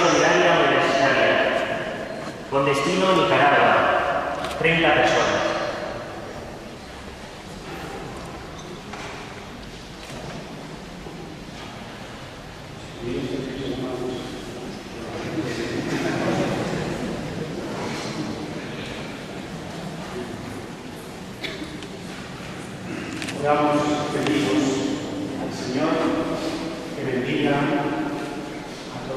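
A large crowd of men and women sings together in an echoing hall.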